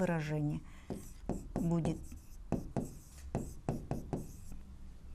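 A marker taps and scrapes on a whiteboard.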